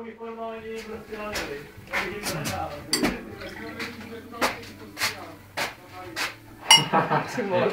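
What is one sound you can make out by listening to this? Glass clinks against glass.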